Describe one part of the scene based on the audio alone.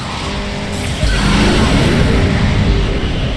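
A loud whoosh bursts out as a car boosts forward.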